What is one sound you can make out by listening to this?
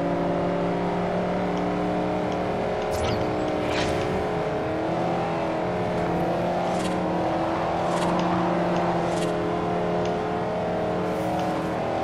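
A car engine roars steadily at high revs.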